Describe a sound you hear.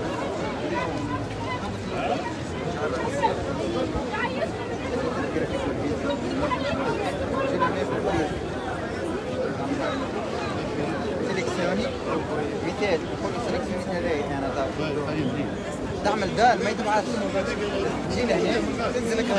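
A large crowd of men and women talks and chants outdoors close by.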